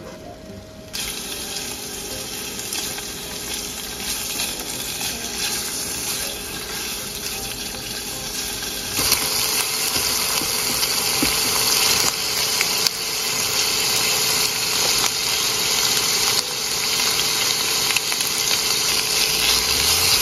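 Meat sizzles and crackles in a hot frying pan.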